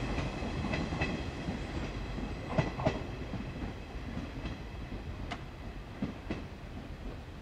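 Train wheels clack and squeal on the rails.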